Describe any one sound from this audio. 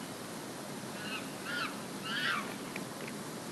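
A chimpanzee hoots a few times.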